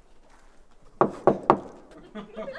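Sharp knocks sound on a wall.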